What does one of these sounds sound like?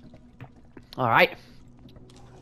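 A young man speaks briefly with surprise.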